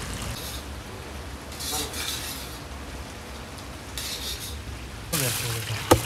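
A metal ladle scrapes and clanks in a large pot.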